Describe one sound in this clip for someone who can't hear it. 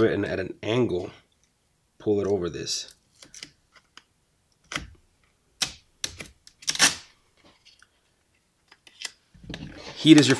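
Vinyl film crinkles and rustles between fingers.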